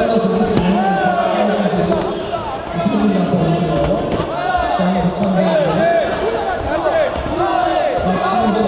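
Gloves thud against a body and headgear.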